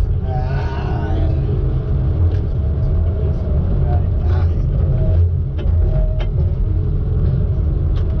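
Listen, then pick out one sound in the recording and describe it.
Hydraulics whine as a crane arm swings.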